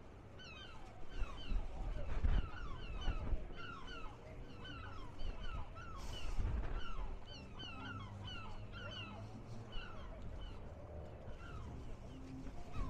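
Wind gusts and rumbles outdoors.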